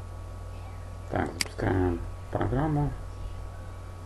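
A computer mouse clicks.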